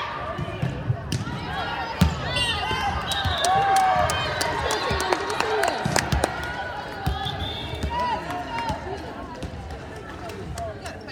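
Young women call out and shout to each other in a large echoing gym.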